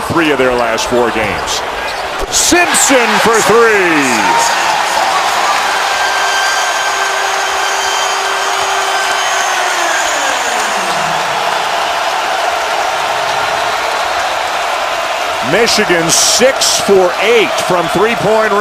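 A large indoor crowd roars and cheers throughout.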